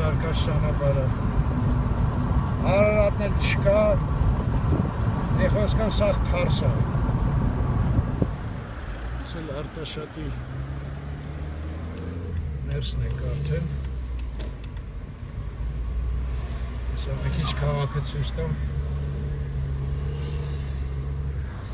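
Tyres roar steadily on a road from inside a moving car.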